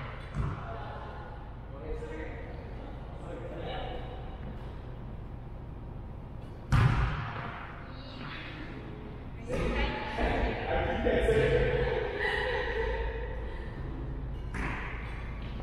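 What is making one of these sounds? Badminton rackets strike a shuttlecock in a large echoing hall.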